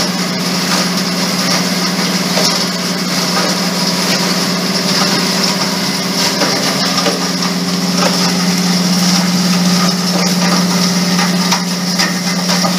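A machine's motor hums loudly and steadily.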